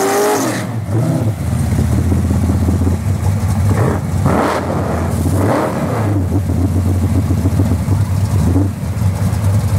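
A car's engine revs in short bursts.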